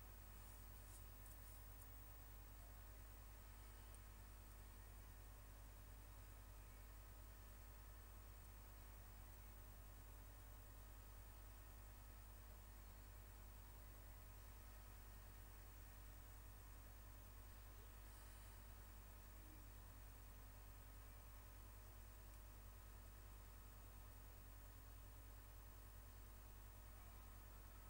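A low electrical hum drones steadily.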